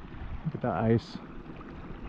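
A hand breaks thin ice at the edge of a stream.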